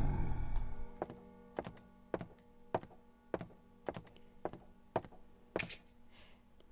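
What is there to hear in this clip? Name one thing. Footsteps thud steadily on a wooden floor.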